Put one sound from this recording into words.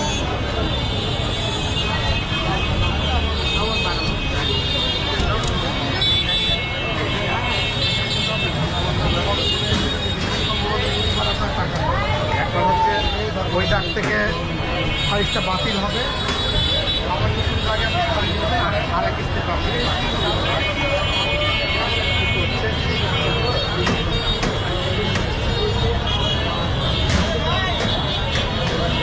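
A large crowd chatters and murmurs all around outdoors.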